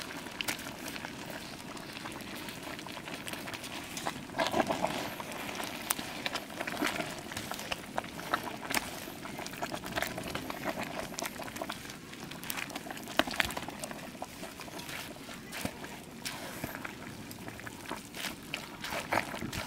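Food bubbles and sizzles in a steaming pot.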